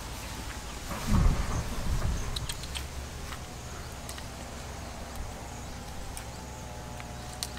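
Leafy branches rustle and shake.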